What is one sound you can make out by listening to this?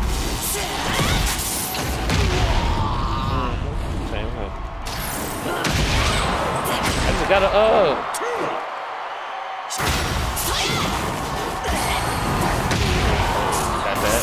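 Punches and kicks land with heavy, smacking thuds.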